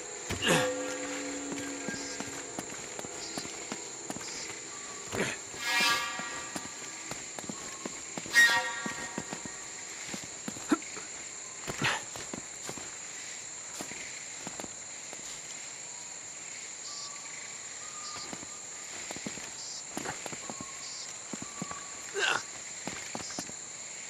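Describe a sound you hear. Footsteps scuff and thud on stone and earth.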